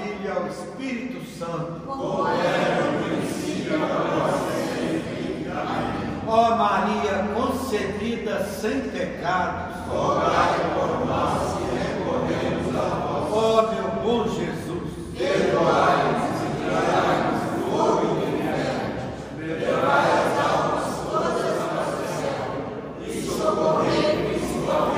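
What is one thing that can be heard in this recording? A group of men and women pray aloud together in a large echoing hall.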